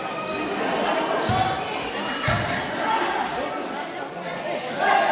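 A large crowd chatters and cheers in an echoing hall.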